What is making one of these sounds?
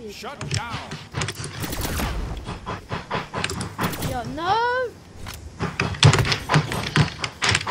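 Game fighters strike each other with sharp hits and whooshes.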